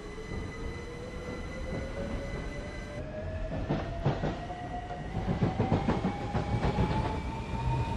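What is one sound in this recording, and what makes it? A train's electric motor whines, rising steadily in pitch as it speeds up.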